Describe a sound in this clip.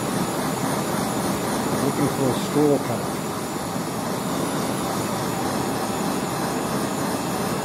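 A gas torch flame roars steadily.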